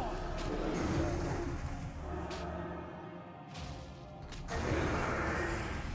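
A magic spell bursts with a bright humming whoosh.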